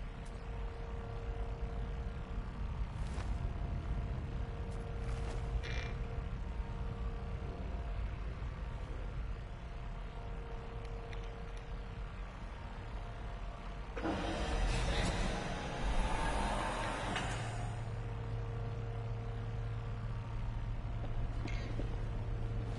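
A deep electric hum throbs steadily.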